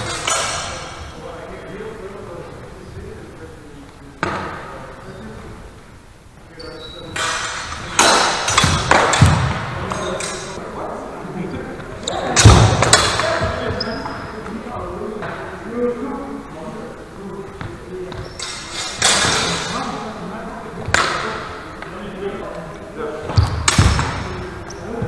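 Swords clash and clatter sharply, echoing in a large hall.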